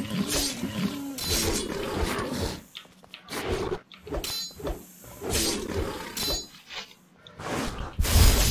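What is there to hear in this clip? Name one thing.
Weapon blows thud and clang in a fight.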